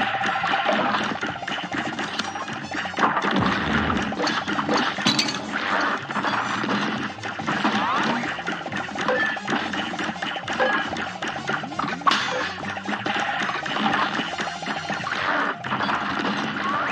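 Rapid cartoon blaster shots fire again and again.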